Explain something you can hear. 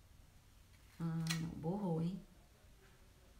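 A woman speaks briefly and calmly close by.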